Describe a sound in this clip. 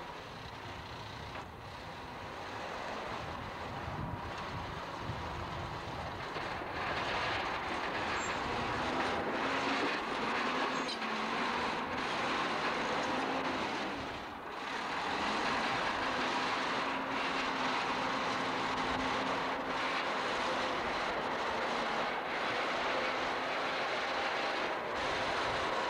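A bulldozer engine rumbles steadily close by.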